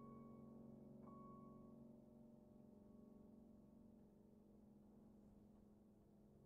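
A grand piano plays sustained notes that ring and slowly fade in a reverberant room.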